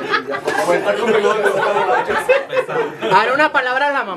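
A group of people laughs.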